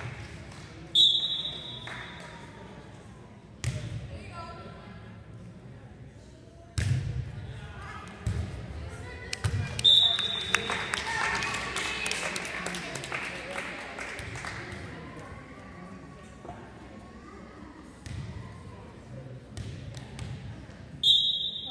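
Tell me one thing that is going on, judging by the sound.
A referee's whistle blows sharply in an echoing hall.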